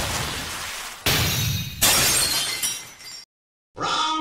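A powerful energy blast bursts with a loud whoosh.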